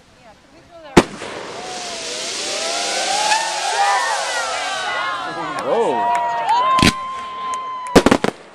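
Fireworks whistle and screech as they fly up.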